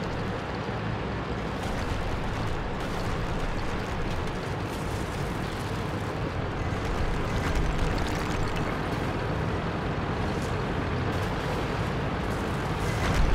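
Tank tracks clank and grind over the ground.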